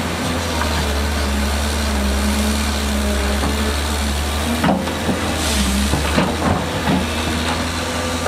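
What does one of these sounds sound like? An excavator engine drones and whines.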